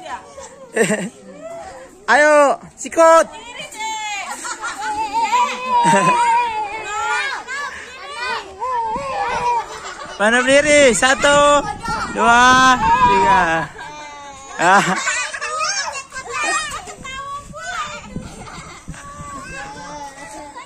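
Young children talk and shout excitedly close by.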